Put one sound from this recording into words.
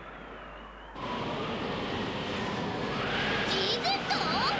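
Wind howls, blowing snow about.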